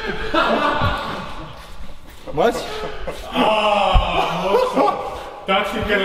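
A young man laughs nearby.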